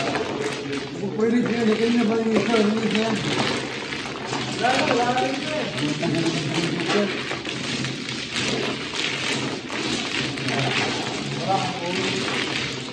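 Mahjong tiles clatter and rattle as hands shuffle them across a table.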